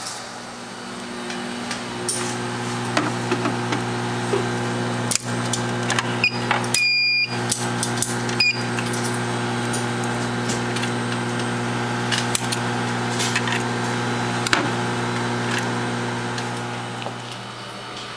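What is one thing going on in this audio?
A small lab machine hums steadily.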